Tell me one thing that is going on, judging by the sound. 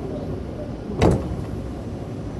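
A train door thuds shut.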